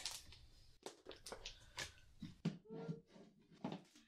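A plastic box knocks and scrapes as it is set onto a shelf.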